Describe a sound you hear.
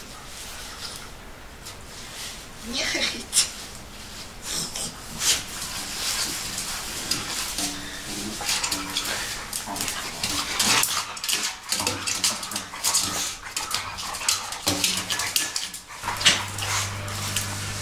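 Nylon tent fabric rustles as a man shifts around inside it.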